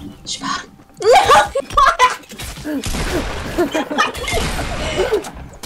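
Gunshots boom in quick bursts.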